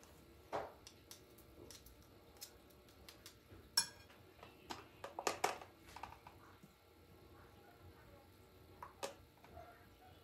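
Spice jars click and clatter as they are opened and set down.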